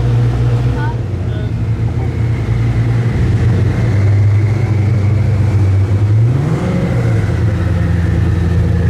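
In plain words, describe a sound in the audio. A supercar engine idles with a deep, loud rumble.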